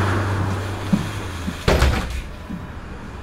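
Pneumatic bus doors hiss and thud shut.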